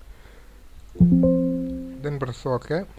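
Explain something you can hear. A computer alert chime sounds once.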